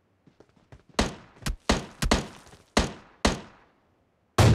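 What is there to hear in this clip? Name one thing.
Rifle gunshots crack in loud bursts.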